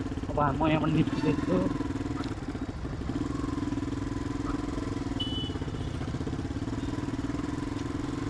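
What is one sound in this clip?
A motorcycle engine runs with a steady, low rumble close by.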